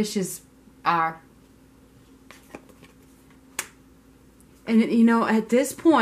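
A card slaps softly onto a table.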